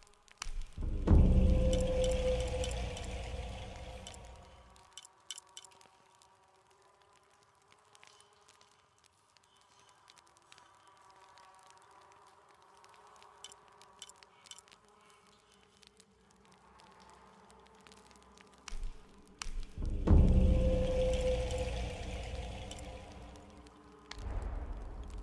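A deep whooshing boom swells and slowly fades.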